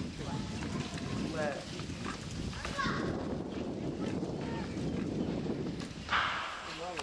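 An elderly woman speaks calmly nearby.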